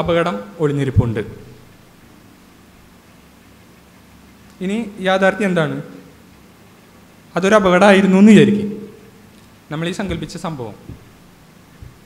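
A young man speaks calmly into a microphone, in short phrases with pauses.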